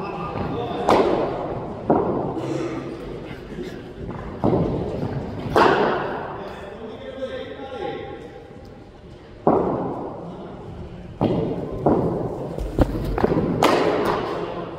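A cricket bat strikes a ball with sharp knocks that echo in a large hall.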